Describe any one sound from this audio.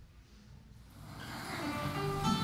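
A string band plays music in a large room.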